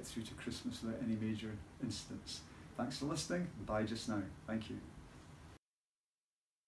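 A middle-aged man speaks calmly, close by, reading out.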